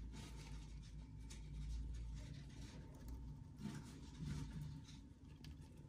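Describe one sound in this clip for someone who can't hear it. A hamster drinks from a water bottle with soft clicks.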